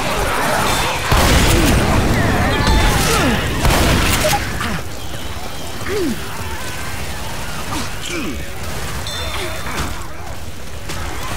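An explosion booms and flames roar.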